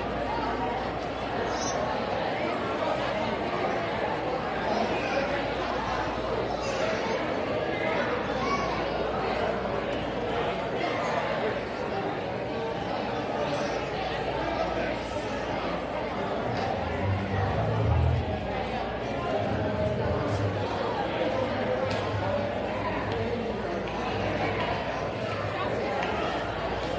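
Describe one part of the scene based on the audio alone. A young woman speaks calmly through a microphone in a large echoing room.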